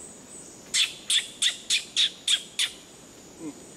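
A monkey gives a run of sharp, high calls from the treetops.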